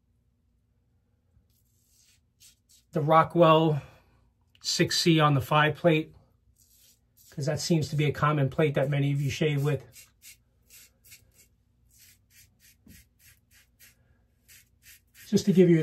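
A razor scrapes softly across stubble.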